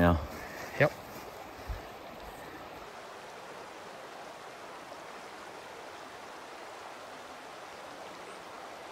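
A stream rushes steadily in the distance.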